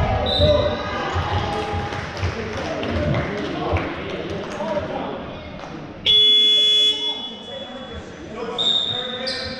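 Basketball shoes squeak sharply on a hard floor in a large echoing hall.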